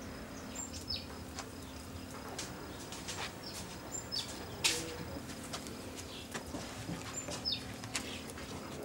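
A wooden stick stirs thick liquid in a metal pot.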